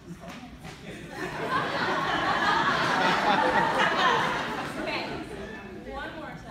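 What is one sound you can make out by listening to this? An audience cheers and applauds loudly.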